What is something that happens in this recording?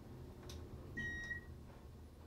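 An elevator chime beeps softly on arrival.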